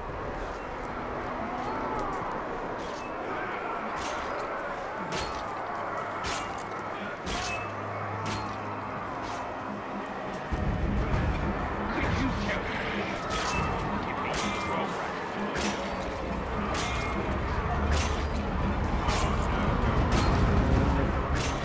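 Weapons clash and strike in a fight, with sharp metallic clangs.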